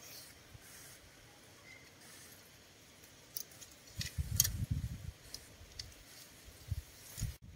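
Hands scrape and pull at soil and plants close by.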